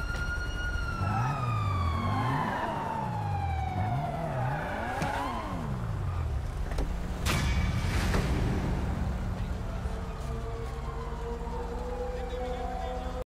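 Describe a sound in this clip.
Police sirens wail up and down nearby.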